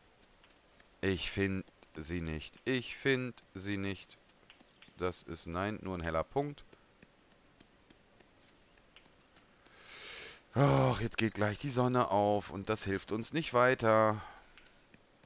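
A man talks close to a microphone, calmly and with animation.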